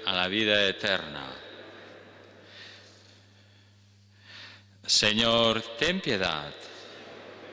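An elderly man reads aloud calmly into a microphone, echoing in a large hall.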